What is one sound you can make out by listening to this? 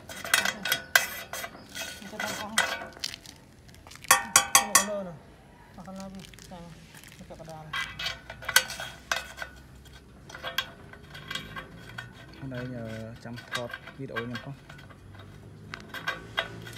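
A plastic cap twists and clicks on a metal tank.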